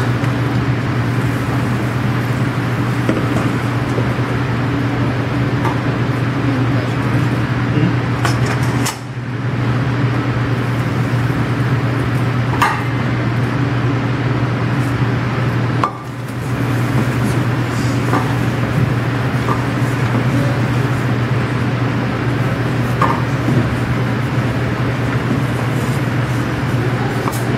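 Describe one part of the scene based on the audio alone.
A man talks steadily, close by.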